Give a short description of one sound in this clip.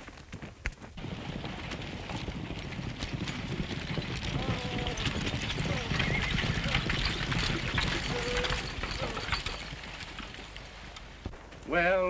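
A stagecoach rattles and rumbles past.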